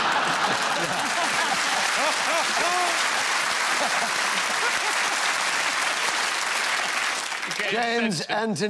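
A studio audience laughs loudly and applauds.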